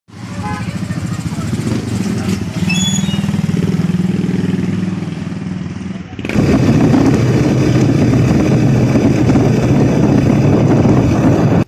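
A motorcycle engine rumbles up close, growing louder partway through.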